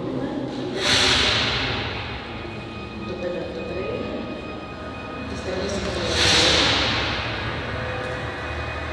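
A film soundtrack plays through loudspeakers in a large, echoing hall.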